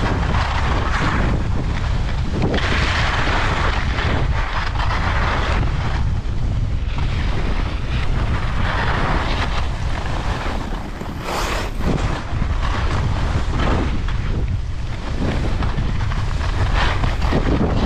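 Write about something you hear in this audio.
Skis scrape and hiss over hard snow, close by.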